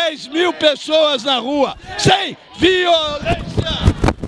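A middle-aged man shouts with animation into a microphone close by.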